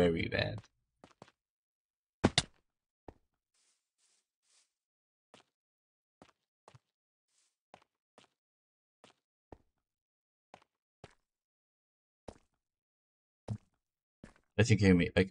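Footsteps tap softly on stone and grass.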